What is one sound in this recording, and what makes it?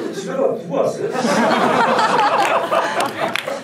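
Two men laugh loudly into microphones.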